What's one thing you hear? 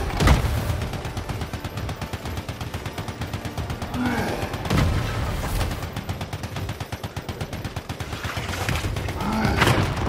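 Rapid automatic gunfire rattles.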